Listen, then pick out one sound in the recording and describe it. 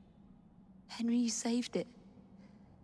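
A young woman speaks warmly and softly, close by.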